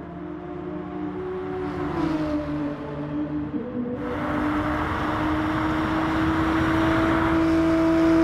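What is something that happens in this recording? A racing car engine roars at high revs, its pitch shifting as the car passes.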